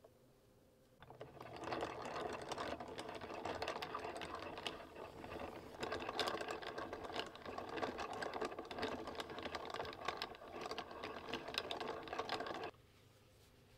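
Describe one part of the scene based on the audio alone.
A yarn winder whirs and rattles steadily as it spins.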